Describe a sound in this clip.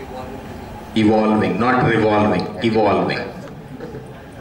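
A young man speaks into a microphone in a large room with echo.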